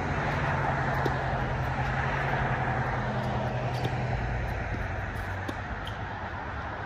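A tennis ball pops off a racket again and again.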